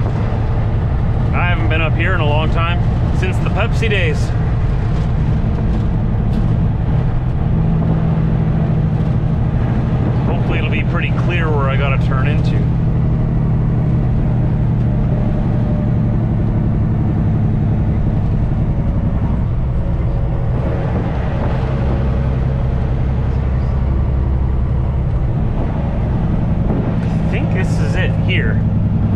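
A truck's diesel engine rumbles steadily from inside the cab.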